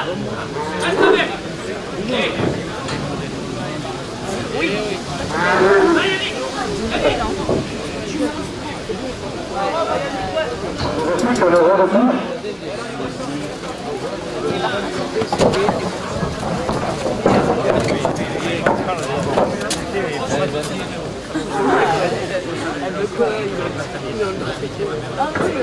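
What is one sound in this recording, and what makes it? A crowd of spectators murmurs and shouts outdoors.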